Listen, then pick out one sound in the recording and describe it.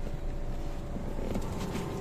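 A hand bumps against a car door panel with a dull thud.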